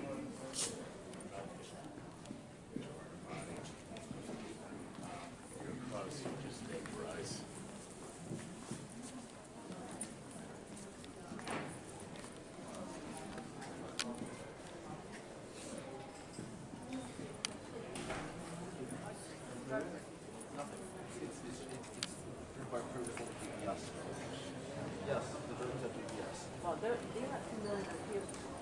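Many people talk and murmur in a large echoing hall.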